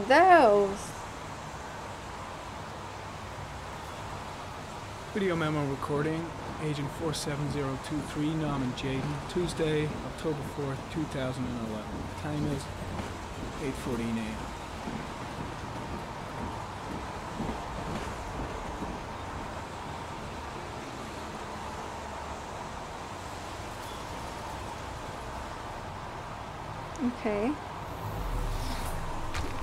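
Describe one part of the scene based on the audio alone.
Rain falls outdoors.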